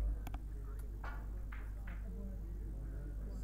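Snooker balls clack against each other and knock against the cushions.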